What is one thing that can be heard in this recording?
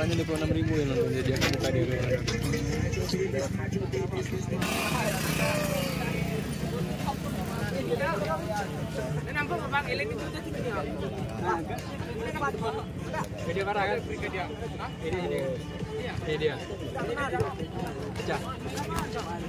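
Men talk and shout outdoors nearby.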